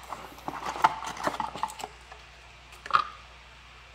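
A cardboard box lid is opened and pushed about.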